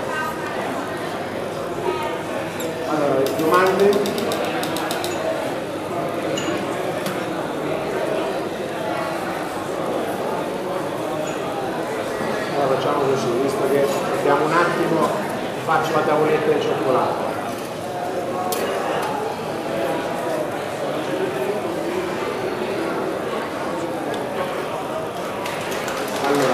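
A man speaks with animation through a microphone over loudspeakers in a large echoing hall.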